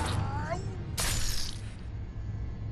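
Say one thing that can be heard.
A blade slashes with a sharp swish.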